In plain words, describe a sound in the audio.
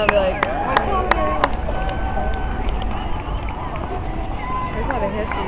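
A crowd of spectators cheers and calls out outdoors.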